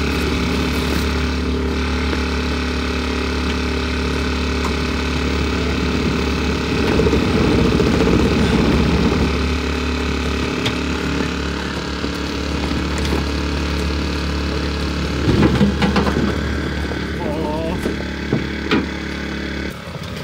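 An electric motor whines steadily.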